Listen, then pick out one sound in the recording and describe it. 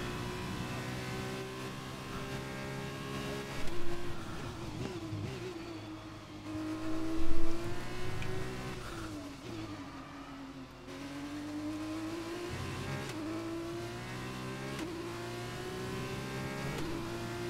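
A racing car engine screams at high revs, rising and falling in pitch as it shifts gears.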